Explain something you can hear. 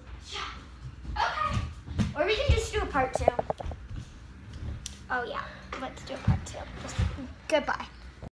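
Young girls talk and laugh with animation close by.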